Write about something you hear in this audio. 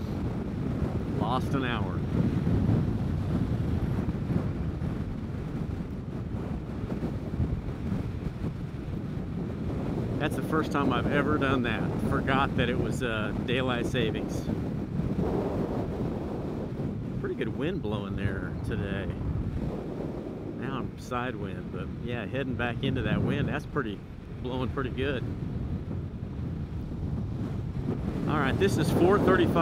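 Strong wind roars and buffets against a microphone.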